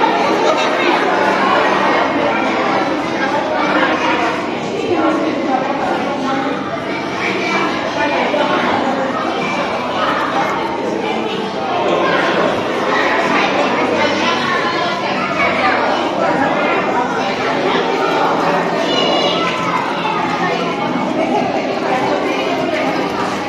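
A crowd of children and adults chatter loudly in an echoing hall.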